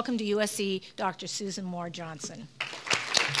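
A middle-aged woman speaks warmly into a microphone in an echoing hall.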